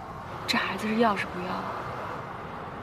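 A young woman asks a question in a tearful, shaky voice, close by.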